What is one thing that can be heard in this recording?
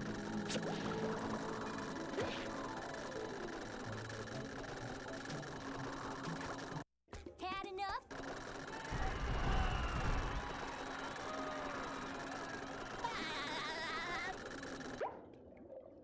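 Bright game music plays steadily.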